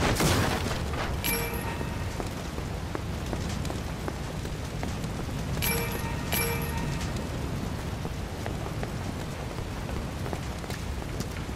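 Fire roars and crackles steadily.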